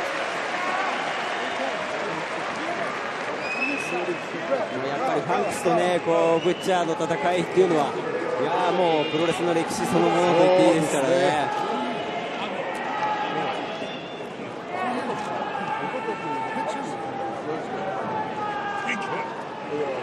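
A crowd cheers and applauds in a large echoing arena.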